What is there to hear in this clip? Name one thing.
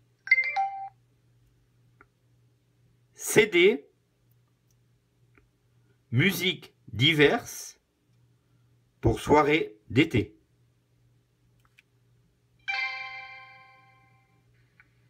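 A small electronic device beeps.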